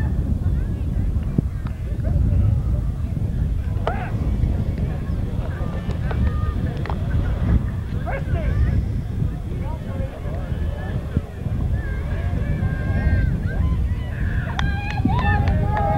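A crowd of young people chatter in the distance.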